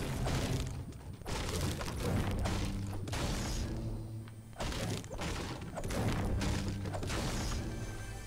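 A pickaxe strikes wood with repeated knocks.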